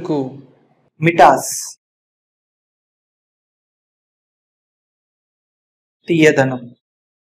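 Another young man speaks single words clearly into a close microphone.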